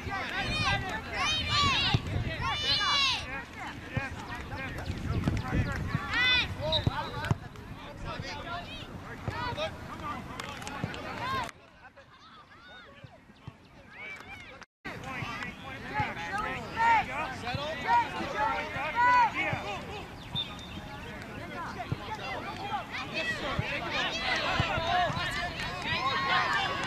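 Players shout to each other in the distance across an open field.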